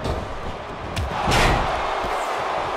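A body slams hard onto a ring mat.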